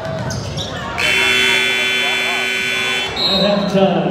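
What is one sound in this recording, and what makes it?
A loud buzzer sounds steadily and then stops.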